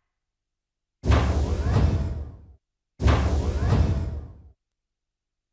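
Heavy metal doors slide shut with a deep, rumbling whoosh.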